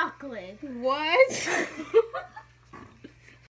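A young woman laughs loudly.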